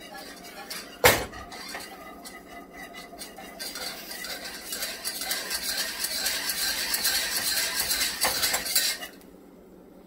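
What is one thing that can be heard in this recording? A whisk stirs and scrapes inside a small metal pot.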